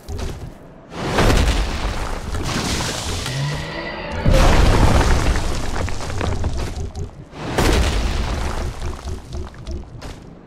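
A large creature roars and thrashes loudly nearby.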